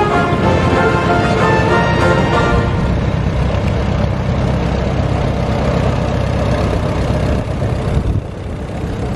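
A tractor engine chugs loudly as the tractor passes close by.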